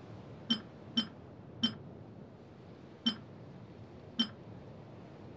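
Short, bright menu clicks sound several times.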